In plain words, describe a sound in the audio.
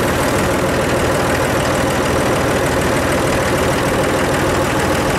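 A diesel tractor engine runs as the tractor drives along.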